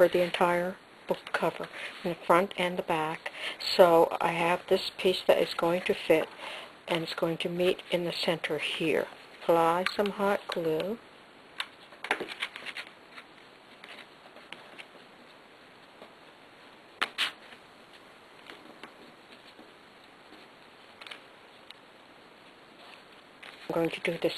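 Fabric rustles softly as hands smooth and fold it.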